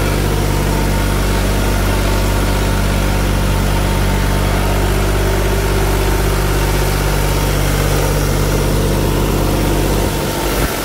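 A tractor's diesel engine idles with a steady, deep rumble close by.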